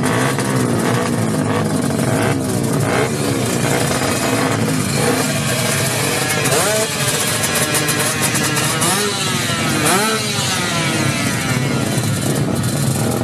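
Motorcycle engines rev loudly up close, rising and falling in pitch.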